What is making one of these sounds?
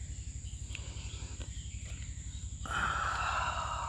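A comb rasps softly through hair.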